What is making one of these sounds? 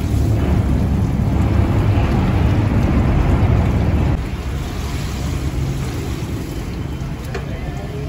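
Cooked rice rustles and pours from a ladle into a pot.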